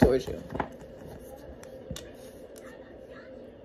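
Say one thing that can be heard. Cards riffle and tap in a young woman's hands.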